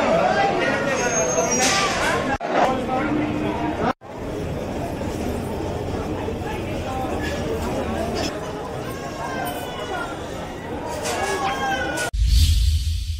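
A crowd of people murmurs and chatters nearby.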